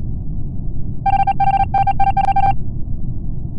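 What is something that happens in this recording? Quick electronic beeps chirp in a rapid run.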